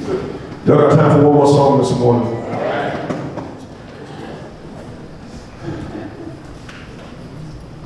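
A man speaks with animation through a microphone in a reverberant hall.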